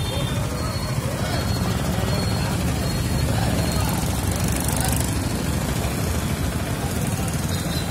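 A motorbike engine drives past close by.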